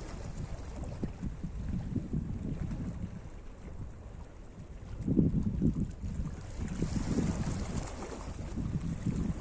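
Small waves lap and splash gently against rocks close by.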